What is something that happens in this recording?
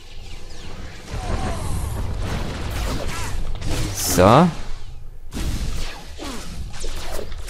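Blasts and impacts crackle in a fight.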